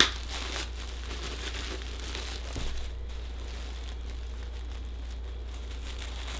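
A plastic bag crinkles as it is unwrapped.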